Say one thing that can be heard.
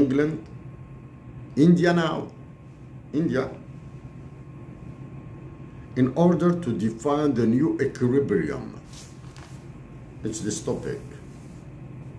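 A middle-aged man speaks calmly in short bursts, close to a microphone.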